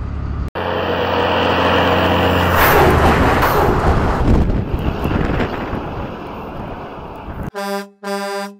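A heavy truck engine rumbles loudly as it approaches, passes close by and fades into the distance.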